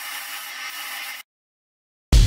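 A spray gun hisses steadily.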